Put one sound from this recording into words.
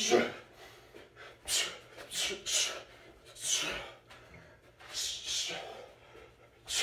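A man exhales sharply and rhythmically close by.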